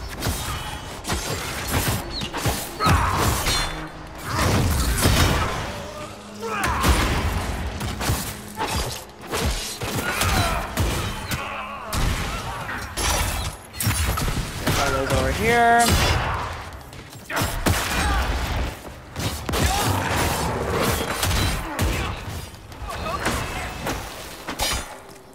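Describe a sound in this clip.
Swords clash and magic blasts crackle in a fight.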